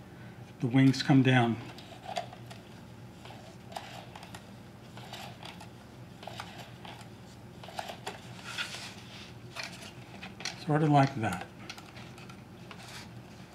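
Cardboard taps and scrapes softly on a table.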